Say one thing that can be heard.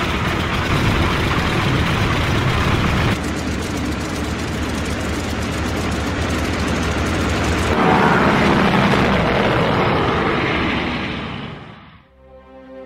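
A propeller plane engine roars loudly.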